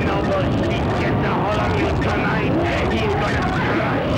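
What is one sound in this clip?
A man shouts excitedly into a microphone.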